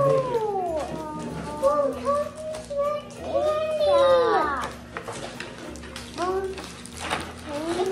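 Plastic wrapping crinkles as a girl handles it.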